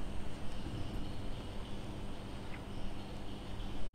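A man sips a hot drink with a soft slurp.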